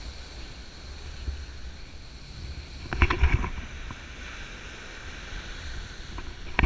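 Wind buffets the microphone in gusts.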